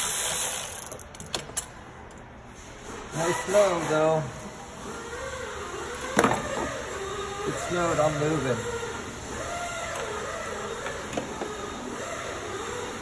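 Metal parts click and clank as a car battery terminal is worked on.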